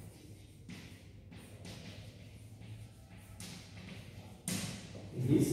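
Chalk scratches and taps on a blackboard.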